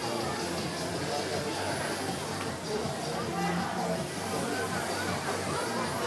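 A crowd of men, women and children chatters nearby.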